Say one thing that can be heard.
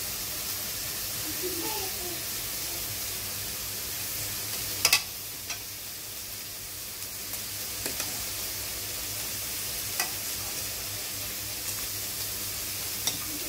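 Soup splashes softly as it is ladled into a bowl.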